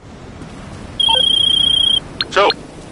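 A mobile phone gives a high, pulsing beep.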